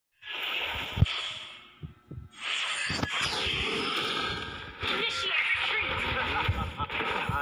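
Game hits thud sharply.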